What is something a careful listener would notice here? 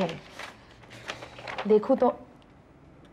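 A woman speaks quietly.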